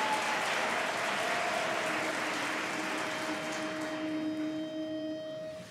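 A large women's choir sings a held chord in a large hall.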